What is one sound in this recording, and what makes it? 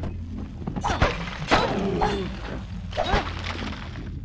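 A sword slashes and strikes with sharp whooshing blows.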